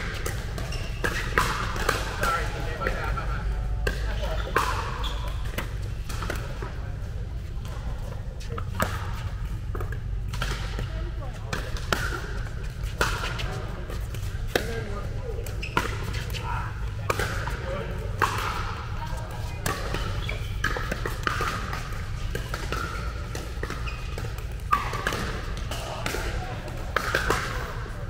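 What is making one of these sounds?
Paddles hit a plastic ball with sharp pops, over and over.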